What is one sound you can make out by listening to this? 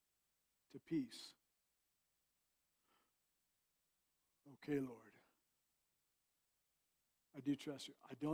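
A man speaks in short phrases through a microphone, with pauses between them.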